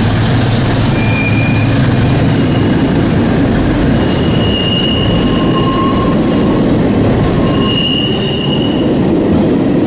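Train wheels squeal briefly on the rails.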